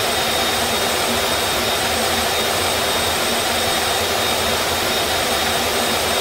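A jet engine drones steadily in the cabin.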